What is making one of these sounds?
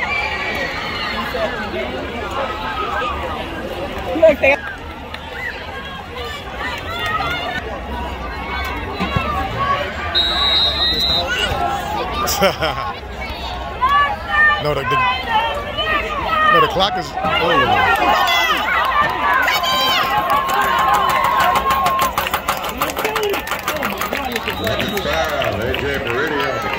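A crowd of people chatters and cheers outdoors.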